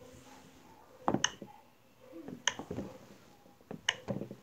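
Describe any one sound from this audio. Silicone bubbles pop with soft clicks, close by.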